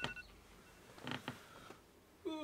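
Bare feet tap softly on a carpeted floor.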